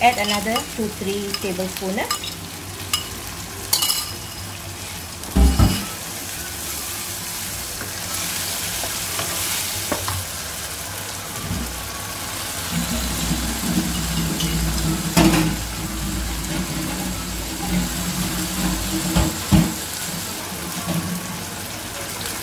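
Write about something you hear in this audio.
Sauce sizzles and bubbles in a hot pan.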